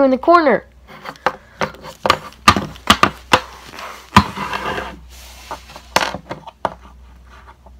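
Small plastic toys tap and knock on a wooden table.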